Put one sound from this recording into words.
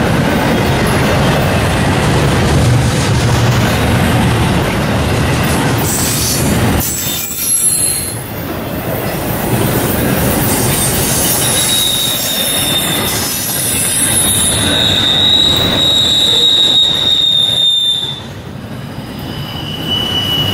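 A double-stack freight train rolls by, its wheels clattering over rail joints.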